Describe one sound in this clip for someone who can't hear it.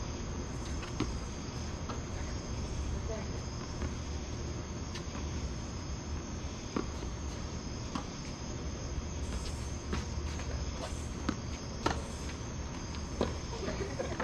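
Tennis rackets strike a ball with sharp pops, back and forth.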